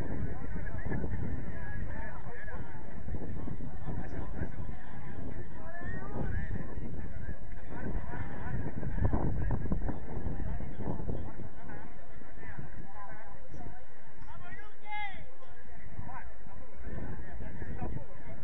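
Young men and women shout and call to each other at a distance, outdoors.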